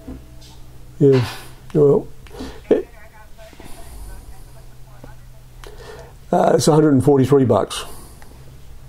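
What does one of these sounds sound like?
A middle-aged man speaks calmly into a telephone close by, in short bursts.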